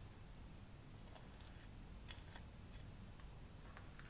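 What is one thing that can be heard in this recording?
A knife scrapes across toast.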